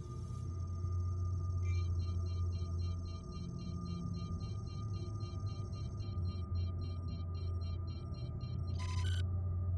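A spacecraft engine hums low and steady.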